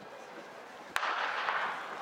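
A starter's pistol fires with a sharp crack.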